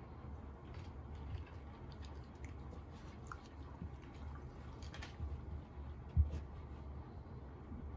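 A dog sniffs eagerly up close.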